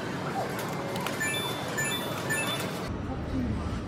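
An arcade machine plays a short beeping electronic jingle.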